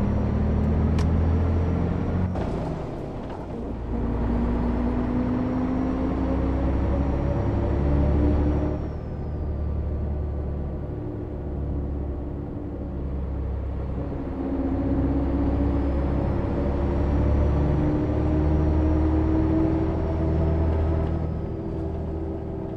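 A bus engine hums and drones steadily, rising and falling in pitch as it speeds up and slows down.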